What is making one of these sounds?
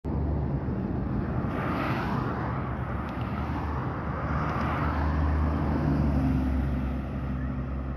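Traffic roars past steadily on a highway outdoors.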